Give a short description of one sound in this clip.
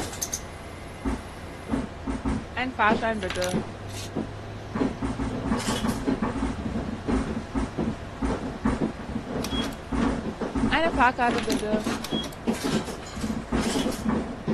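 Footsteps of several people thud and shuffle on a bus floor.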